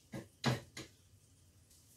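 A metal lid clinks against a pan.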